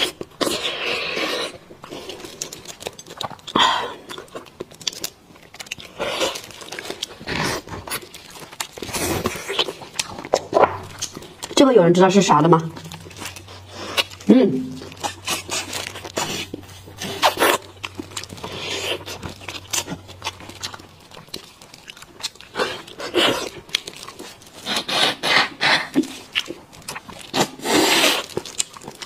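A young woman slurps and sucks loudly close up.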